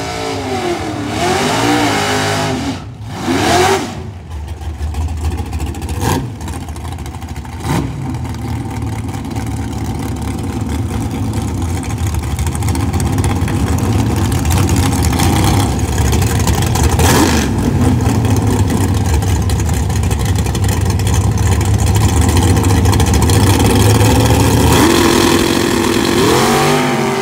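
A loud race car engine idles with a deep rumble and revs in bursts.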